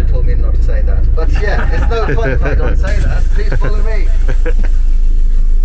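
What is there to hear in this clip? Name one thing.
A man speaks with animation through a microphone and loudspeaker.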